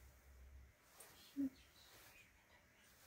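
Paper rustles in a person's hands.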